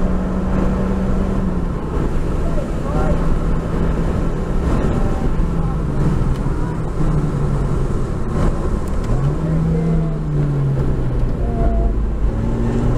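A race car engine roars loudly from inside the cabin, its pitch dropping and jumping as the gears change.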